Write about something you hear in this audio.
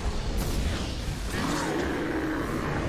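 A magic blast whooshes and crackles.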